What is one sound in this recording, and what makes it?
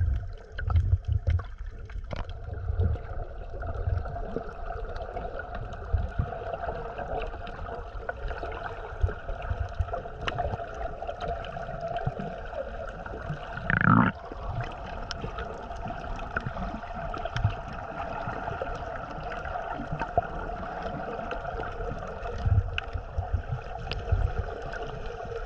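Water swirls and rumbles, heard muffled from underwater.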